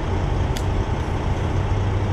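Fuel gushes from a pump nozzle into a tank.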